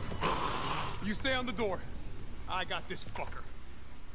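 A man speaks in a gruff voice.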